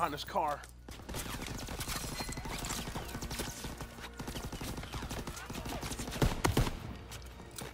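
Gunshots crack loudly, several times.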